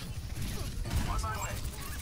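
An explosion bursts with sparks.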